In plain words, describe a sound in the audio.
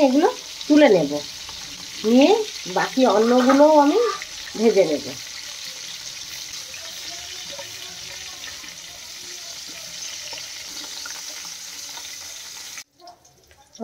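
Prawns sizzle in hot oil in a pan.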